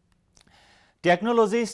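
A man speaks clearly into a microphone like a news presenter.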